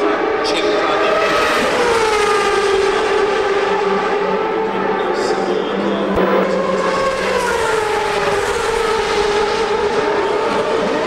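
Racing car engines scream at high pitch as cars speed past, the pitch gliding down as they go by.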